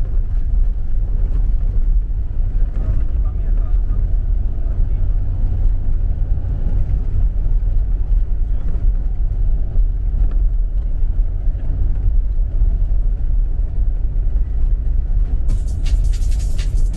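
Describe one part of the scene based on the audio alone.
Tyres crunch and rumble over a snowy, rutted road.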